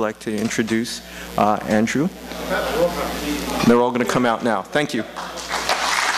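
A middle-aged man speaks through a microphone in an echoing hall.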